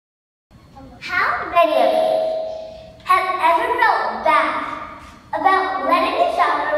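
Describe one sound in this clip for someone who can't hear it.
A young girl speaks loudly and expressively through a microphone in a large echoing hall.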